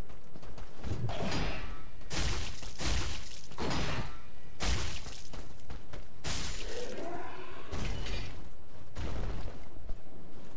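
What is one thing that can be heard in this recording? Metal blades clash and strike in a fast fight.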